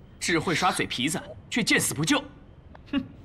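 A young woman speaks sharply and close by.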